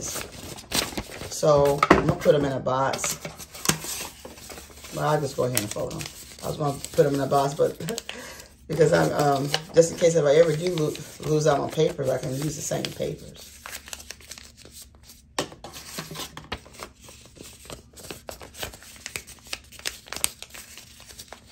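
Paper rustles and crinkles as it is unfolded and folded close by.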